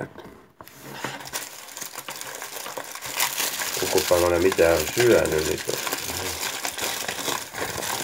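Aluminium foil crinkles and crackles under hands.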